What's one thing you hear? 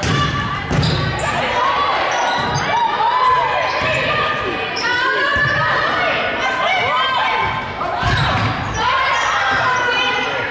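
Young women shout and call out across a large echoing gym.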